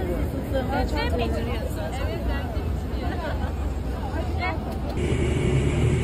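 Women talk nearby in a lively voice.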